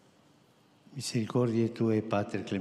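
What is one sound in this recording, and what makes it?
An elderly man chants slowly into a microphone.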